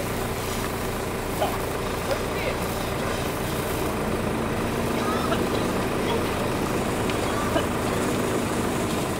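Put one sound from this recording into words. A firework fountain hisses steadily.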